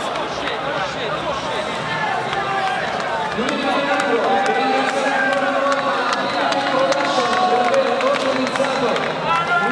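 A man speaks loudly into a microphone.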